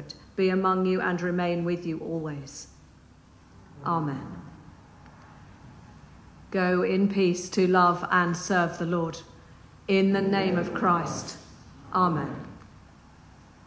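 A woman sings slowly in an echoing room, heard from a distance.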